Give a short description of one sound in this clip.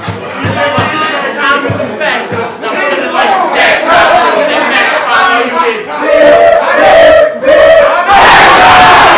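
A young man raps loudly and rhythmically.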